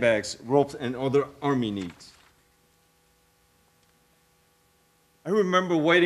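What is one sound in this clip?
A man reads aloud with expression into a microphone.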